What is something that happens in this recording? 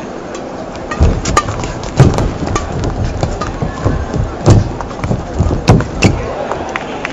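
Badminton rackets smack a shuttlecock back and forth in a quick rally.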